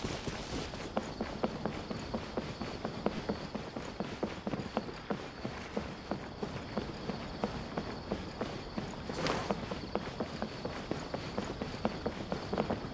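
Quick footsteps patter on wooden boards.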